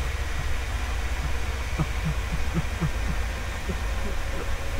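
A man laughs softly into a microphone in short breathy bursts.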